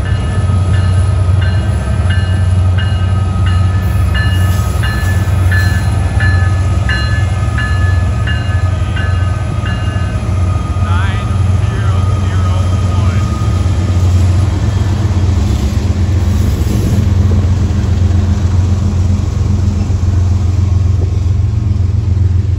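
Diesel-electric freight locomotives rumble past.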